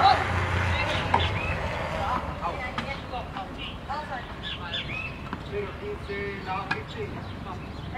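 A tennis racket strikes a ball during a rally outdoors.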